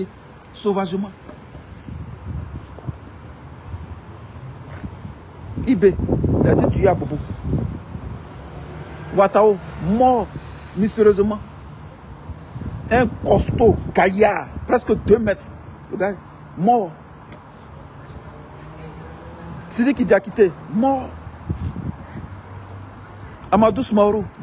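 A man speaks calmly and close up, with pauses.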